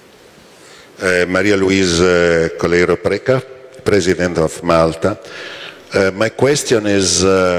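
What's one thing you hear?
A man speaks steadily into a microphone, heard through loudspeakers.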